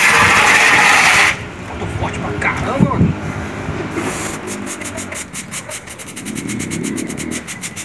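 A broom scrapes across a concrete floor.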